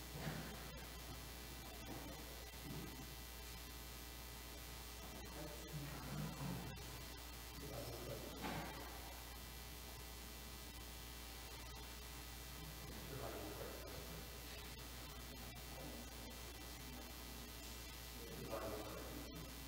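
Men and women chat quietly in a large echoing hall.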